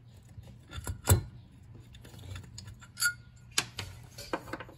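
Metal bolts clink as they are set down on a wooden bench.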